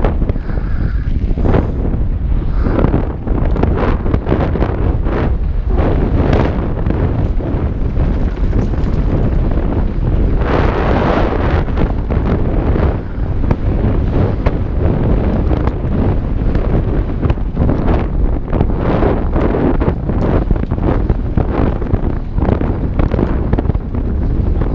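Wind roars loudly past a helmet microphone.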